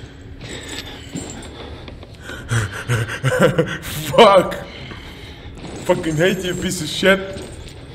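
Heavy footsteps thud slowly on a hard floor close by.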